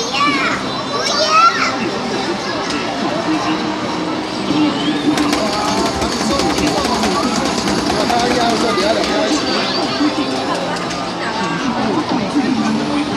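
Game sound effects chirp and burst from a loudspeaker.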